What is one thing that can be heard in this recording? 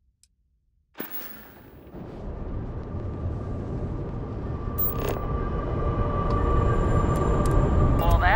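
A spaceship's engines roar in a deep, steady rumble that slowly grows louder.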